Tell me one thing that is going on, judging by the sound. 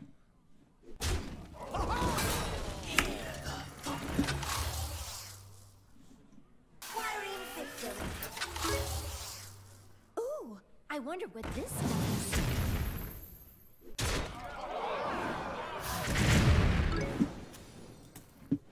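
Game sound effects chime and crash.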